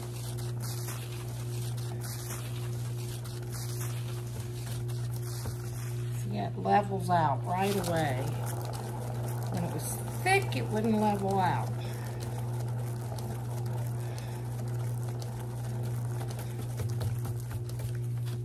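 A motor hums steadily as a wheel spins.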